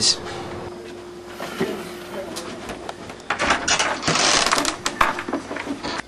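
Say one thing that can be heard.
Footsteps shuffle across a floor.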